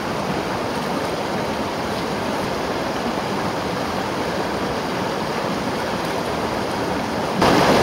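Water splashes as a man washes his face with his hands.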